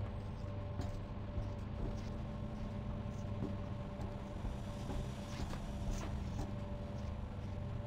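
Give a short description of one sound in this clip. Footsteps clank steadily on metal stairs and floor.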